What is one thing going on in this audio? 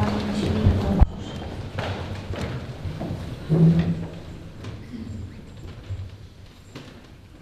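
A crowd shuffles and rustles while rising to its feet.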